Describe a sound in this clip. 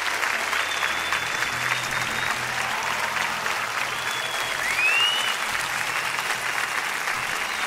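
A drummer plays a drum kit with quick strikes.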